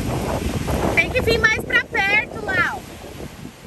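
A young girl calls out in a high, excited voice.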